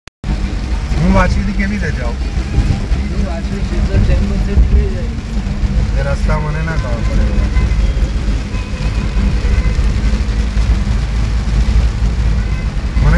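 Heavy rain drums steadily on a car's windscreen and roof.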